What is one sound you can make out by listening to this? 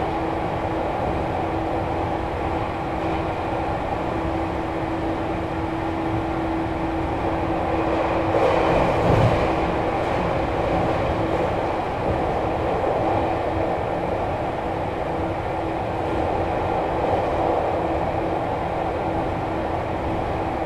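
A train rumbles steadily along the tracks with a low motor hum.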